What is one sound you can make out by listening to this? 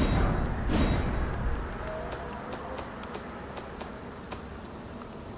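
Soft game menu clicks tick as selections change.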